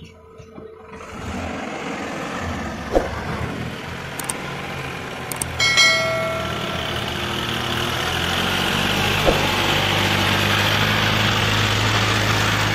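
A diesel farm tractor drives closer, pulling a loaded trolley.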